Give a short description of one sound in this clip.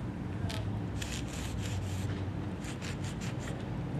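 Chalk scrapes on pavement.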